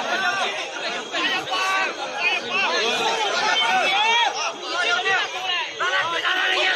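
A crowd of men shout and cheer excitedly outdoors.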